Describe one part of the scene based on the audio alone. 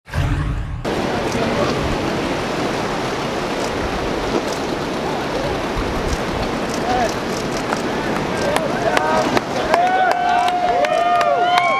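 Waves wash and break against rocks.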